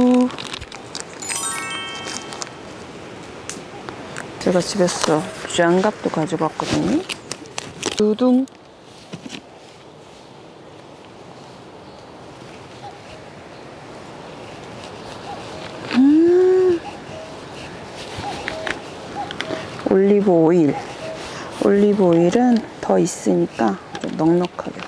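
Plastic packets rustle and crinkle in hands.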